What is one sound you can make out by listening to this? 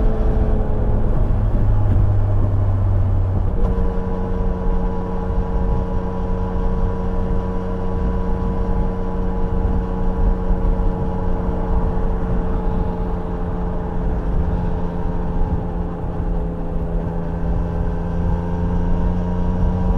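A motorcycle engine hums steadily at speed, shifting pitch once.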